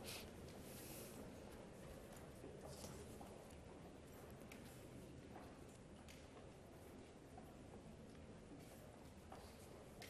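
Footsteps of a small group of men march slowly across a large hall.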